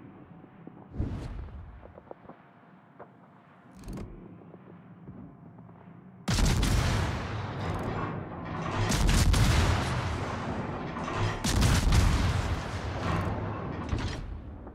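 Naval guns fire with deep booms.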